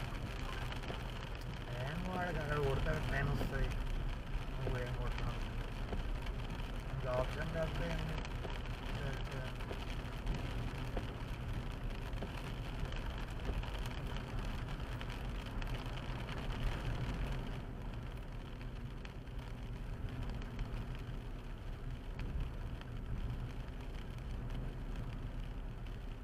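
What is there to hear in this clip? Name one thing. A car's engine hums steadily as it drives along a wet road.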